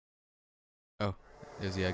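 A young man talks casually into a close microphone.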